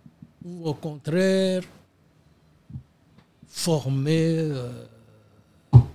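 An elderly man speaks slowly and with pauses into a close microphone.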